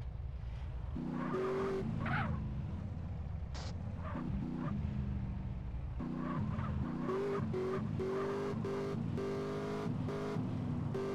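A car engine revs loudly as the car drives off.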